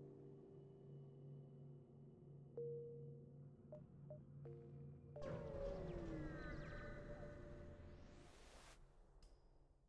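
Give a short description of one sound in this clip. Soft electronic music hums steadily.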